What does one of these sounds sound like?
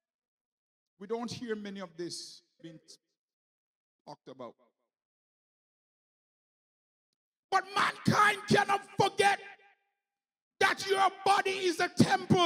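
A man preaches forcefully into a microphone, speaking in short bursts with pauses.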